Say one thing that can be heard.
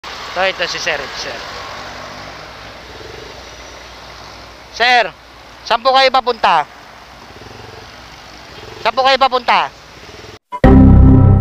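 A motorcycle engine idles and rolls slowly through busy street traffic.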